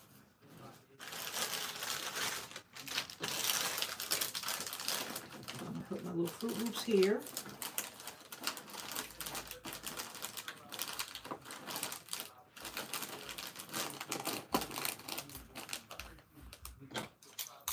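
Plastic wrappers crinkle as hands pack items into a basket.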